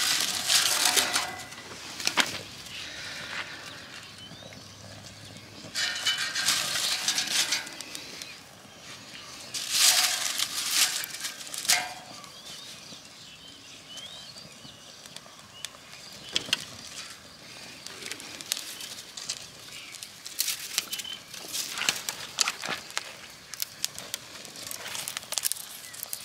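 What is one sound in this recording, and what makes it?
A small fire crackles and pops as it burns.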